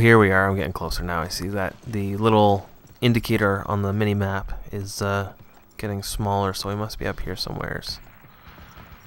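Horse hooves clatter at a gallop.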